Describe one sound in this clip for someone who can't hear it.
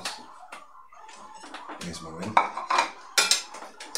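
A plate clatters onto a stone counter.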